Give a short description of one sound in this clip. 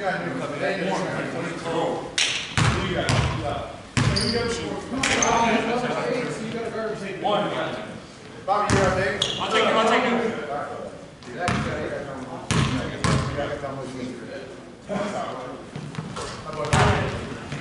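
Men call out and talk during a basketball game in an echoing gym.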